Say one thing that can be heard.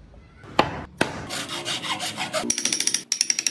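A hand saw cuts through wood with quick strokes.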